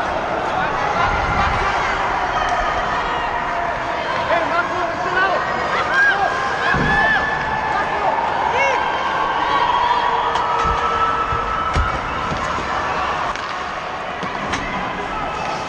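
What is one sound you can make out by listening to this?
Pucks and sticks clack sharply now and then.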